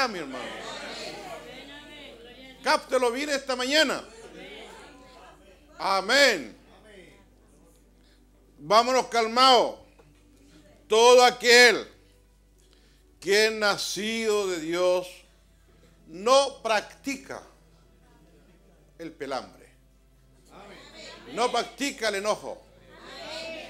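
An elderly man speaks with animation into a microphone in a room that echoes, with pauses between phrases.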